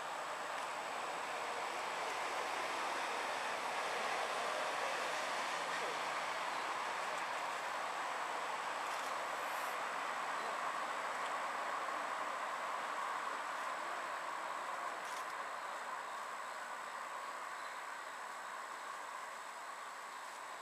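Reeds rustle softly in a breeze.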